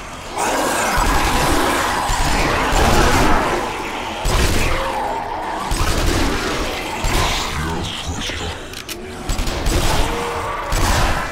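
A rifle fires loud shots in quick bursts.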